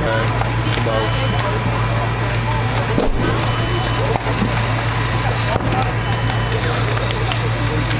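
A large fire crackles and roars.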